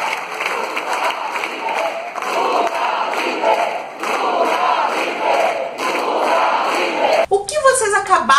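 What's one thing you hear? A large crowd chants together loudly in a big echoing hall.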